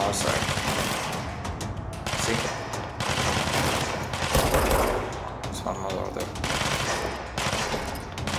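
A pistol fires repeated shots.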